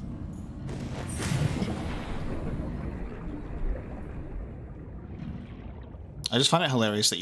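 Water gurgles and rushes in a low, muffled underwater rumble.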